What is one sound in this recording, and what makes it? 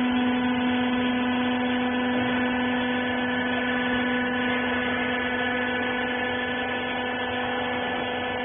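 A machine hums steadily with a loud electric drone.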